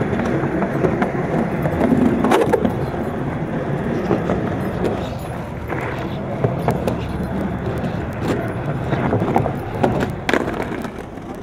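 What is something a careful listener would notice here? A skateboard clacks and knocks against the ground.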